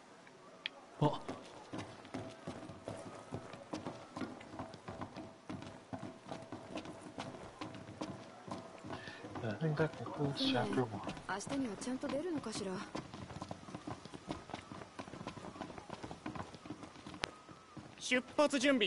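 Footsteps run quickly across a wooden deck.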